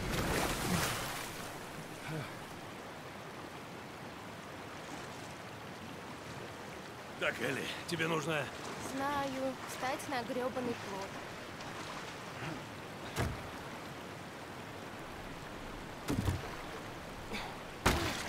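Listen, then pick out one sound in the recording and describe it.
Water splashes as a man swims.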